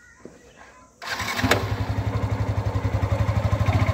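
A motorcycle engine starts up and idles with a steady, throbbing rumble close by.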